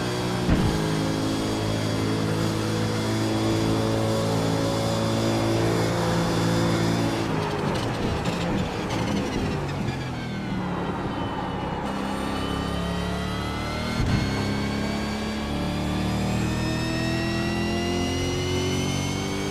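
A racing car engine roars at high revs, dropping in pitch as the car brakes for a corner and then rising again as it speeds up.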